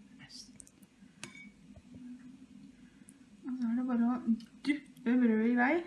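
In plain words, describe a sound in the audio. A knife scrapes softly against a ceramic bowl.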